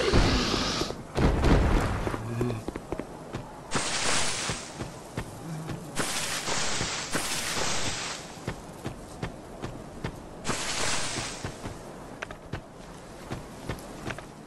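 Footsteps patter on stone and grass.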